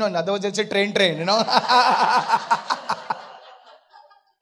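A man laughs loudly through a microphone.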